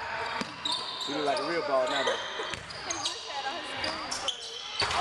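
Young men call out across a gym.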